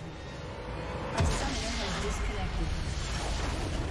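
A deep blast booms as a structure explodes.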